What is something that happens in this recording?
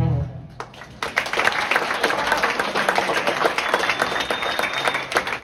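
A live band plays upbeat music in a large room.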